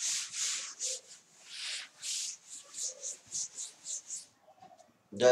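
A duster rubs briskly across a chalkboard in repeated strokes.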